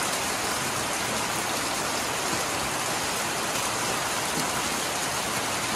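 Rainwater streams off a roof and splashes into a full barrel.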